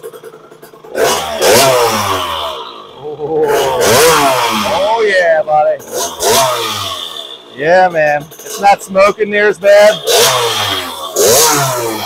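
A small motorbike engine revs up and down loudly.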